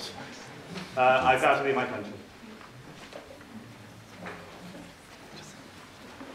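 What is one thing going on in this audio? A man speaks to an audience in a large echoing hall.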